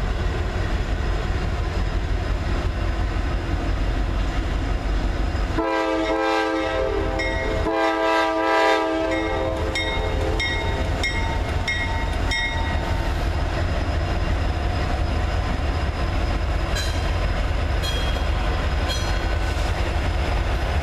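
Diesel freight locomotives rumble as they approach.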